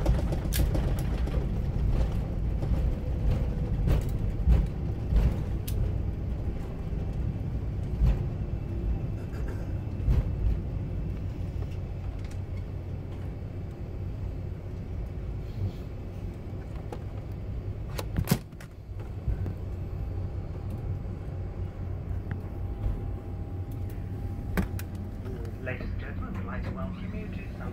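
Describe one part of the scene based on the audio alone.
A plane's wheels rumble and thump over the runway.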